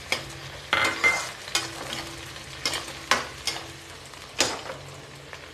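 A metal spatula scrapes and clanks against a steel wok.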